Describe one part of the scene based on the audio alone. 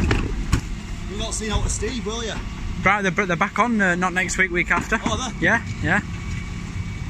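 A hydraulic bin lift whines as it raises and tips a wheelie bin.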